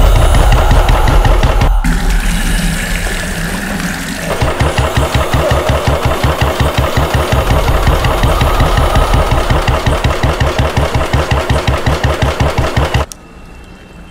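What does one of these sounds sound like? An engine thumps rapidly and steadily.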